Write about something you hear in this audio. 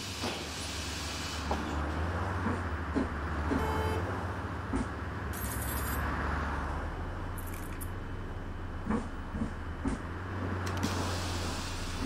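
Footsteps tap as passengers climb aboard a bus.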